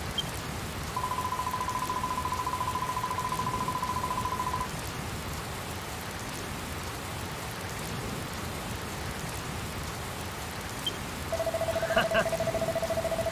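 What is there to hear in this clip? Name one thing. Rapid electronic blips sound as text types out.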